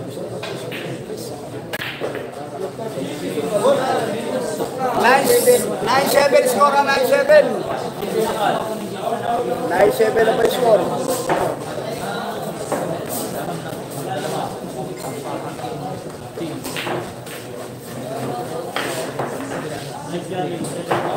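Pool balls click sharply against each other.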